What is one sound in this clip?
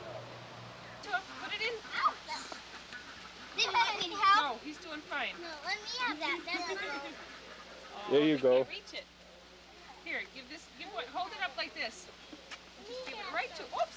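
Young children chatter and call out excitedly nearby.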